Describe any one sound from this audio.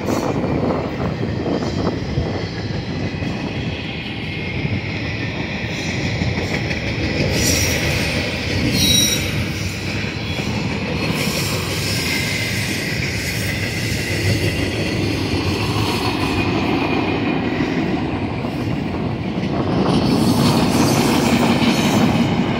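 A long freight train rumbles and clatters steadily past at a distance.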